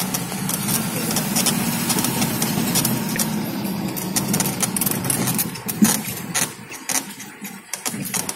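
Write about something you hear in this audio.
Leaves and branches brush and scrape against the vehicle.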